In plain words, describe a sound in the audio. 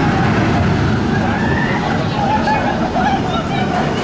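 A roller coaster train rumbles past on its track.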